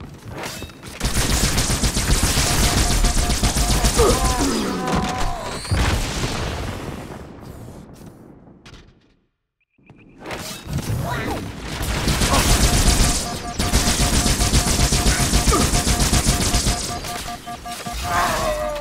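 Energy weapons fire in rapid, hissing bursts.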